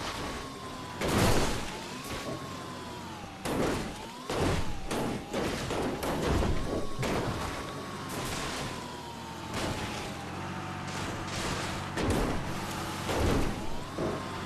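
A cart's wheels thump and crash over rough rocks.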